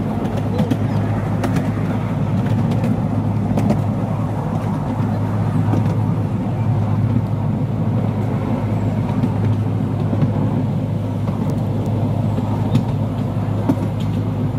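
Train wheels rumble and clack over the rails.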